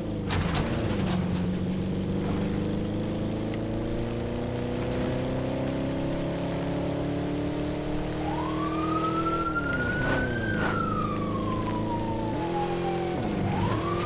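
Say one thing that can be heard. A car engine revs and drones, rising and falling in pitch.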